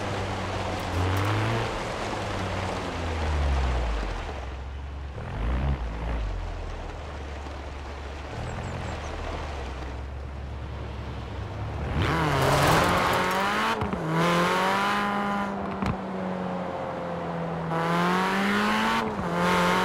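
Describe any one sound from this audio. A car engine revs and changes pitch as it drives.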